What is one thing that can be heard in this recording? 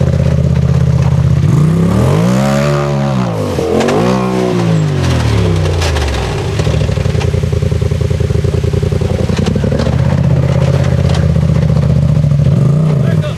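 A waterfall splashes steadily nearby.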